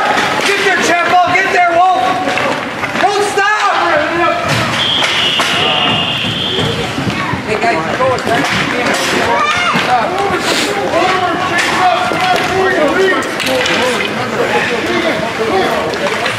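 Children shout and call out across an echoing ice rink.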